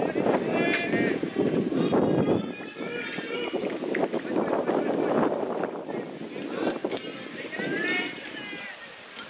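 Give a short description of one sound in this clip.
Young women shout and cheer loudly outdoors.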